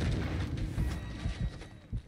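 A rifle fires rapid shots close by.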